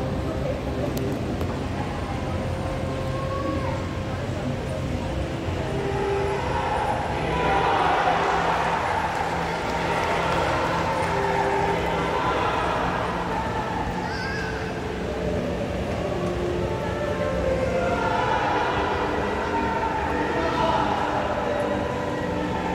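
A large crowd murmurs and cheers in a big echoing hall.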